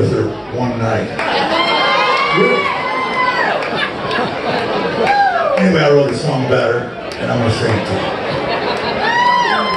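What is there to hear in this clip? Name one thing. A guitar strums along.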